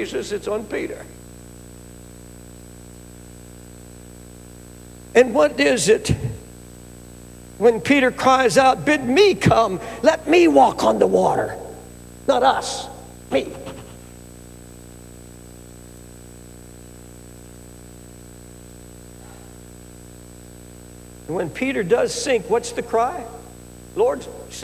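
An elderly man preaches into a microphone, speaking with feeling and long pauses.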